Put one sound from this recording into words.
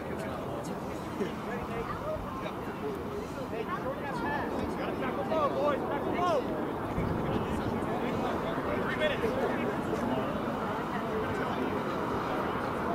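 Several men shout and call out to each other outdoors.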